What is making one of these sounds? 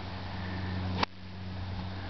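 A golf iron strikes a golf ball with a sharp click.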